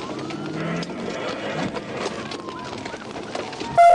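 A vehicle crashes and tumbles across grass with a heavy thud.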